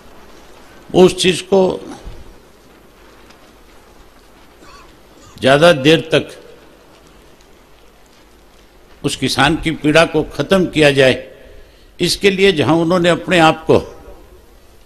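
A man speaks loudly into a microphone in short bursts with pauses.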